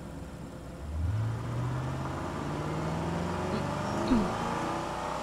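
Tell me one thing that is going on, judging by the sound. A car engine revs up as a car pulls away.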